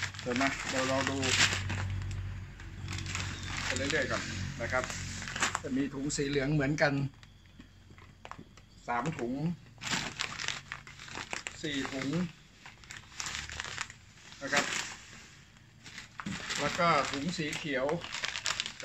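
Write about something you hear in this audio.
Plastic packaging crinkles and rustles in a man's hands.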